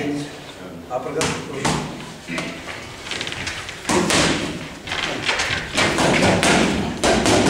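Boxing gloves thump against punch mitts in quick bursts.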